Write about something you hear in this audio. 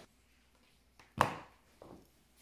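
Plastic goggles clack down onto a wooden table.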